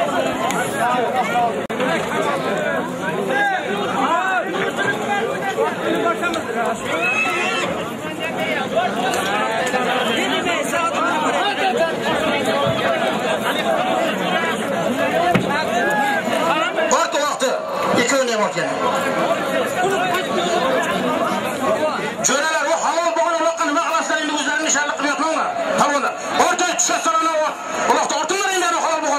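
A large crowd of men talks and shouts all at once outdoors.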